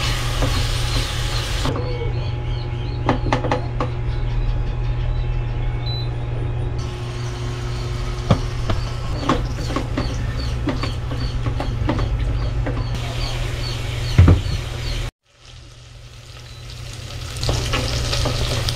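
A wooden spatula scrapes and knocks against a metal pot.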